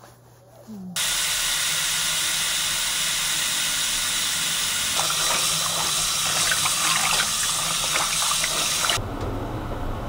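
Water runs from a tap into a tub.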